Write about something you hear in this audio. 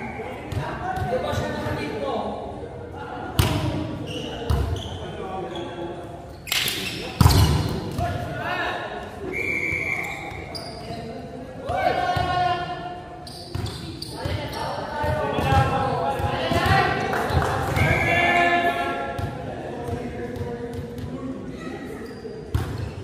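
Young men shout and call to each other in a large echoing gym.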